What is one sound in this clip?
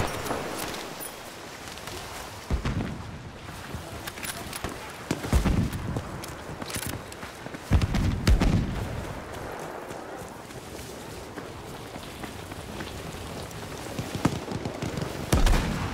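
Wind blows steadily in a storm.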